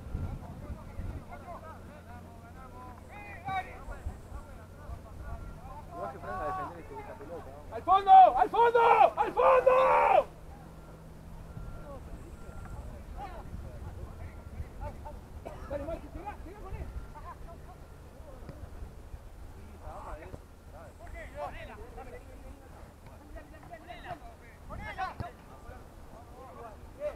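Players call out to each other across an open field.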